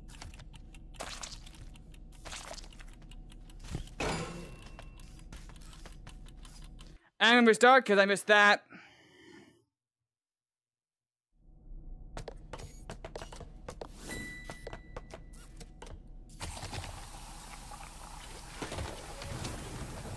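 Buttons click on a machine.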